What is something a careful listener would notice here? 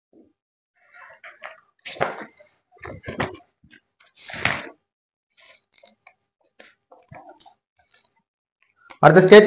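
Paper pages rustle.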